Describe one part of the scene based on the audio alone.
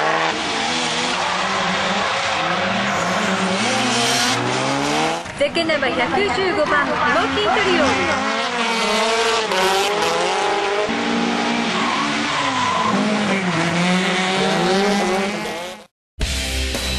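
Tyres screech on asphalt.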